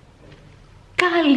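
A young woman speaks cheerfully close by.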